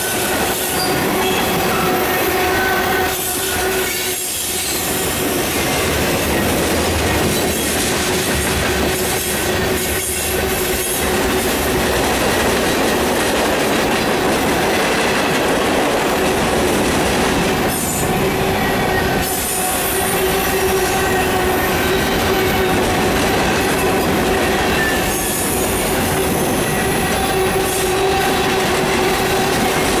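Steel wheels squeal and screech on the rails.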